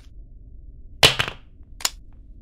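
A wooden plank clatters down onto a wooden floor.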